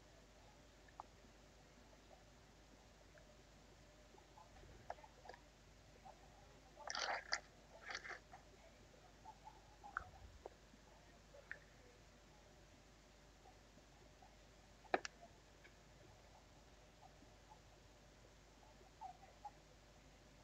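Small plastic pieces click and tap together in hands.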